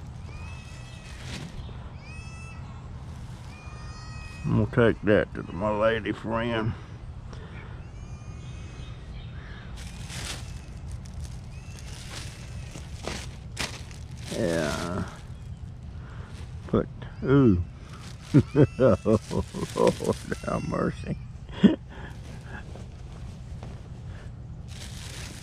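Cloth rustles.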